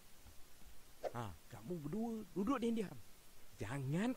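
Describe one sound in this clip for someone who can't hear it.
An elderly man speaks playfully and cheerfully, close by.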